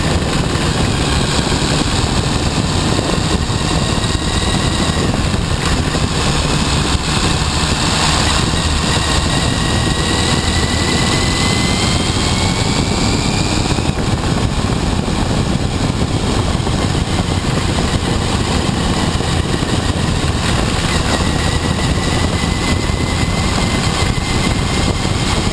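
A motorcycle engine rumbles steadily close by, its pitch rising and falling.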